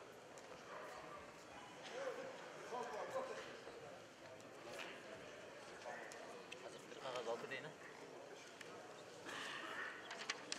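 Feet shuffle and scuff on a mat.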